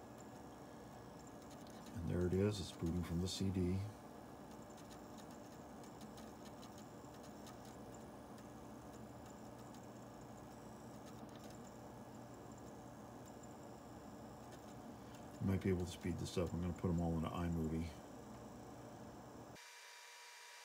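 A computer hums quietly and steadily.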